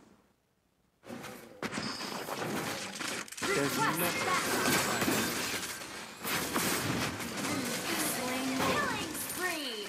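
Magic blasts and sword hits crackle and boom in a video game battle.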